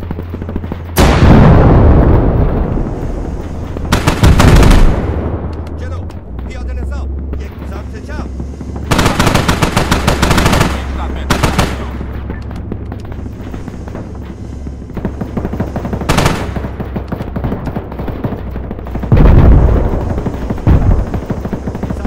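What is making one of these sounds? Loud explosions boom and rumble away.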